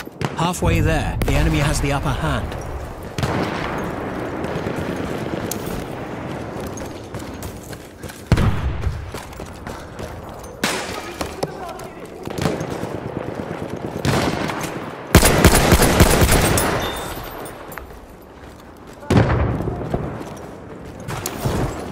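Rifle shots crack loudly and echo.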